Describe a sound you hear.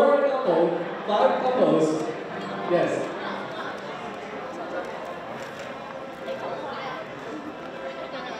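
A crowd of people chatters and murmurs in an echoing hall.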